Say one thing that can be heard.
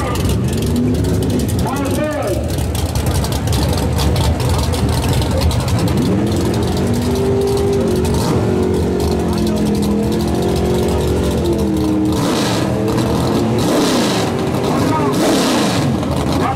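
A car engine rumbles loudly and revs up and down nearby.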